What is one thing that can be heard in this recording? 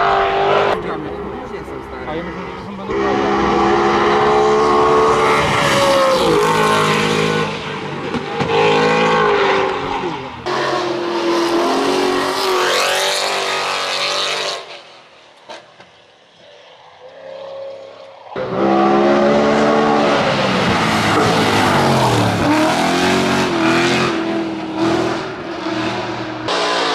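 A racing car engine roars loudly, revving hard and shifting gears as the car speeds past.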